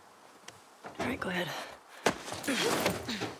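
A man talks into a headset microphone.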